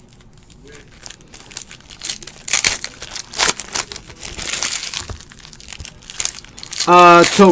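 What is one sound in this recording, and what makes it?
A foil wrapper crinkles and rustles between fingers.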